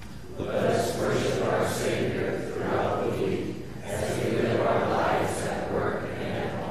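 A man reads aloud through a microphone in a large echoing hall.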